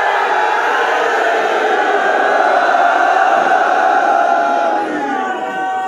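A crowd of men cries out together.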